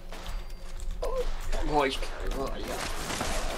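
An older man talks calmly into a close microphone.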